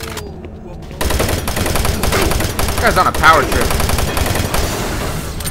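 A game gun fires rapid shots.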